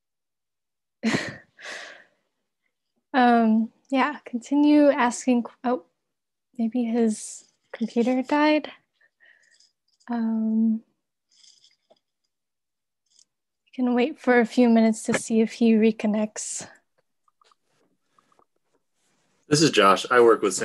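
A young woman speaks calmly over an online call, with pauses.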